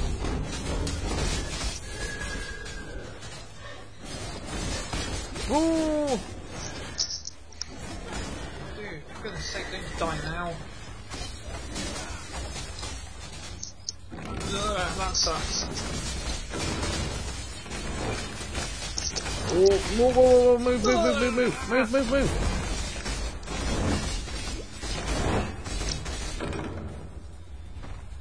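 Magic spells crackle and burst in quick succession.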